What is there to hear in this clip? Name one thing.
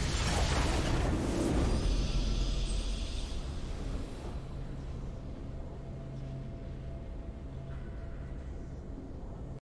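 A triumphant game fanfare plays and fades.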